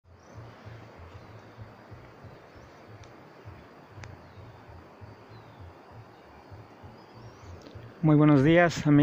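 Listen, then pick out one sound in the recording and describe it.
A light wind blows softly through trees outdoors.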